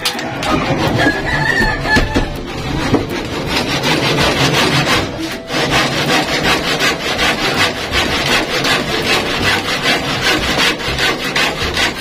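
A hand saw cuts through wood with quick, rhythmic strokes.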